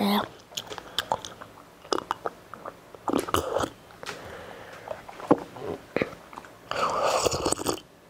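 A young girl sips from a cup with quiet slurping sounds.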